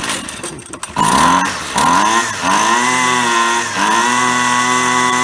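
A small two-stroke engine starts and revs, then idles loudly.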